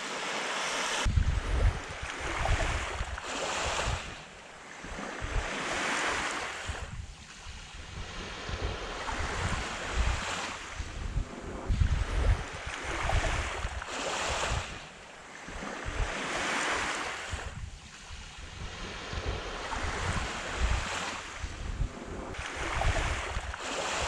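Small waves wash gently onto a beach in slow surges.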